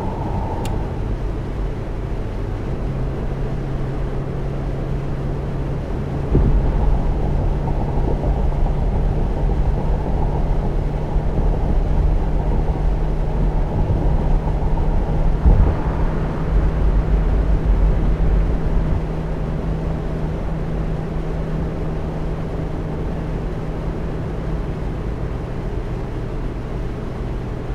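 Tyres roll over a road with a steady rumble.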